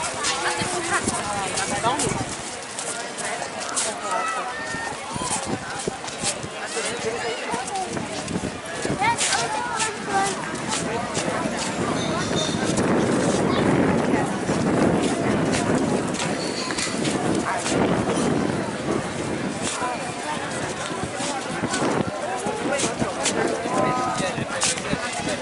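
A crowd chatters around the listener outdoors.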